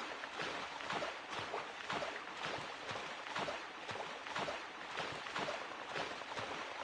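Water splashes in a quick, steady rhythm as someone swims.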